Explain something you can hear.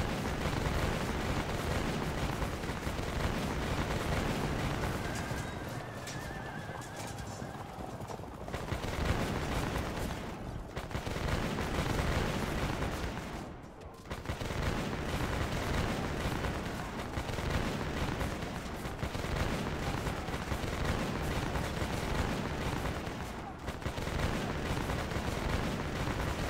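Musket volleys crack and rumble.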